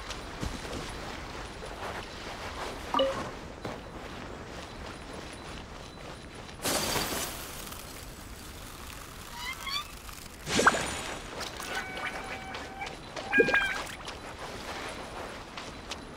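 Footsteps patter quickly on ground.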